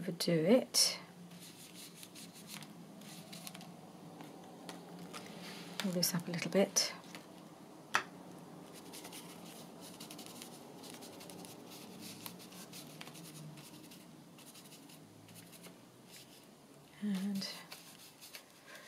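A foam sponge dabs softly against paper.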